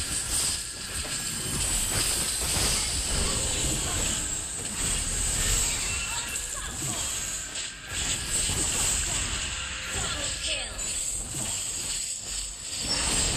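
Game sound effects of spells and hits clash and burst in quick succession.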